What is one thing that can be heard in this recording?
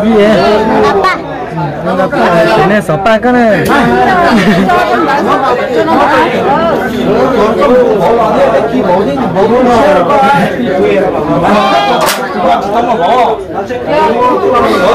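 A crowd of men and women talk loudly over one another close by.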